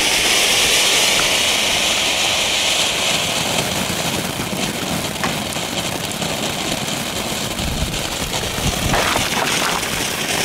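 Sparks from a firework fountain pop now and then.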